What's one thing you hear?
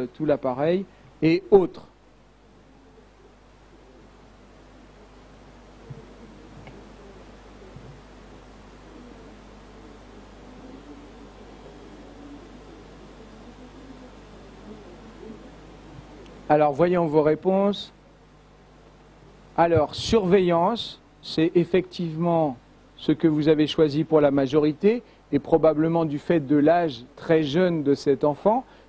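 A middle-aged man speaks calmly into a microphone, heard through loudspeakers in a large room.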